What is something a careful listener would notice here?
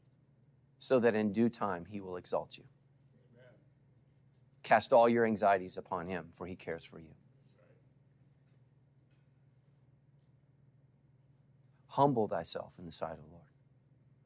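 A middle-aged man speaks calmly and earnestly into a microphone, pausing between phrases.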